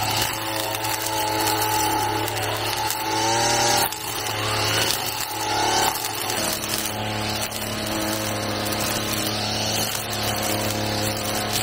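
A string trimmer engine whines steadily close by, its pitch rising and falling.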